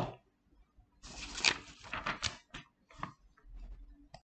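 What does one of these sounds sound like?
A paper page rustles as it turns.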